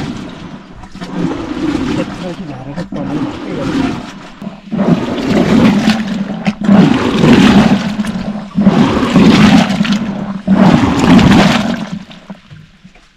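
A wooden pestle pounds wet mash in a wooden mortar with heavy, squelching thuds.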